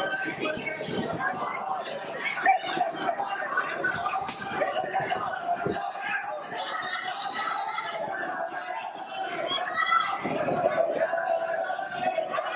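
A crowd shouts and cheers.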